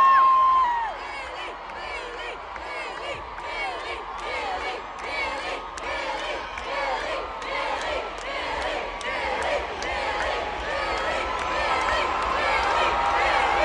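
A crowd of young women sings along loudly.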